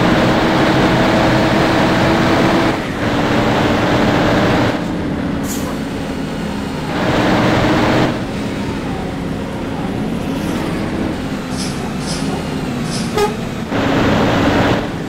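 A car engine hums steadily at high speed, its pitch shifting as it speeds up and slows down.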